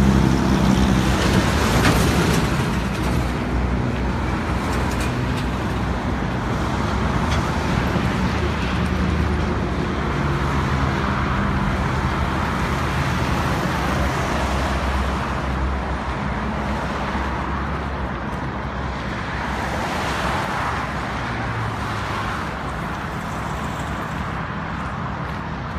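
Heavy trucks and cars rush past close by on a highway.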